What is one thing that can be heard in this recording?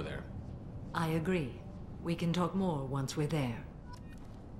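A woman speaks calmly and evenly, close by.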